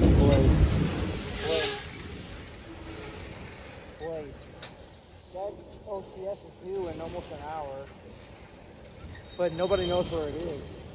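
A freight train rolls past, its wheels rumbling and clattering on the rails.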